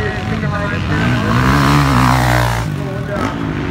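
A motocross bike roars loudly as it revs past close by.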